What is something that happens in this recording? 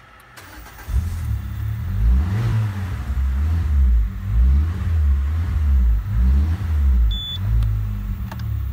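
A car engine revs up and down several times.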